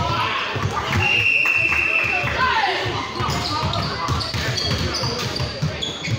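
Sneakers squeak on a polished floor.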